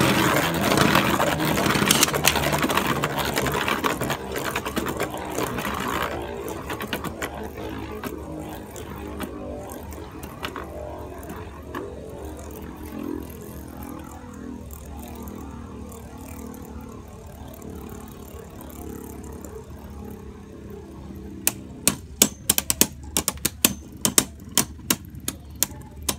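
Spinning tops whir and scrape loudly across a plastic arena, slowly quietening.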